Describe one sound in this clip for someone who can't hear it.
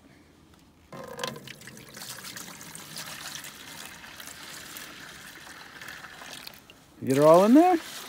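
Liquid pours steadily from a metal bucket into a plastic pail.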